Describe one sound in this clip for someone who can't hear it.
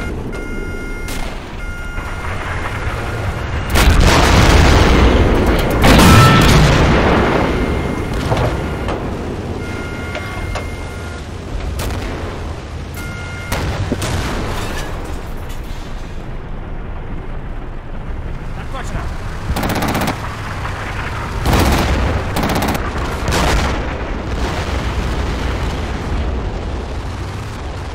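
A tank engine rumbles.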